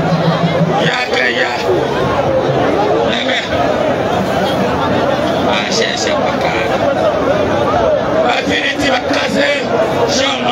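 A man speaks loudly through a microphone and loudspeakers, outdoors.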